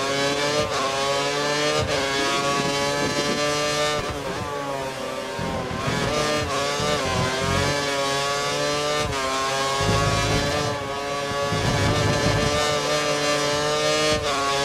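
A Formula One car's engine screams at high revs, with sharp drops in pitch at each gear shift.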